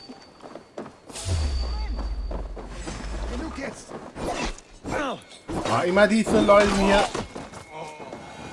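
Blades clash and strike in a fight.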